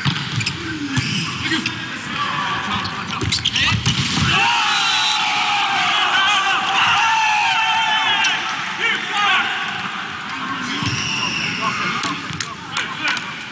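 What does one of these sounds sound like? A ball is struck hard during a volleyball rally.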